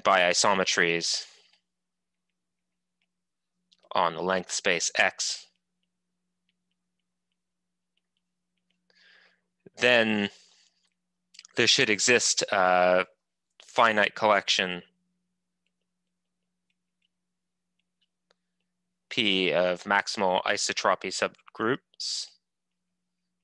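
A man speaks calmly through a microphone over an online call, pausing often.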